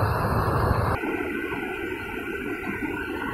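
Water roars as it pours out of a spillway.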